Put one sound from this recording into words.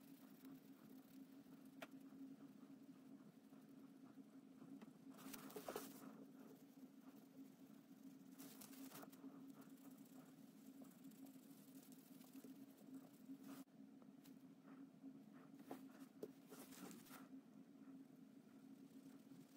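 A cotton swab rubs softly against a watch case.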